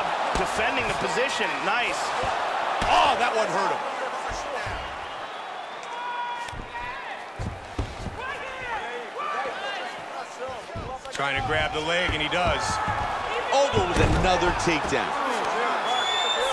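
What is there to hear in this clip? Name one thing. Punches thud against a body in a fight.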